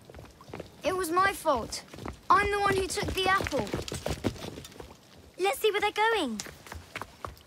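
A young boy speaks earnestly.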